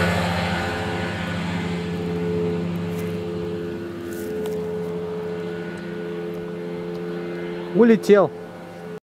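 A small propeller plane's engine drones steadily as it flies low overhead and then away.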